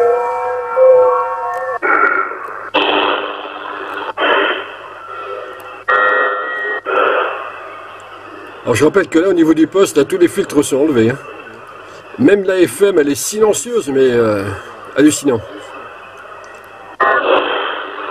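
Radio static hisses and warbles through a small loudspeaker.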